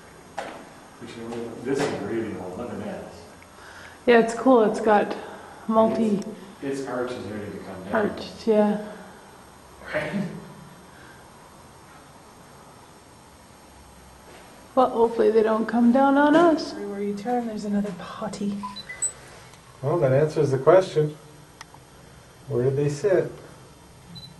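A man speaks calmly close by, with pauses.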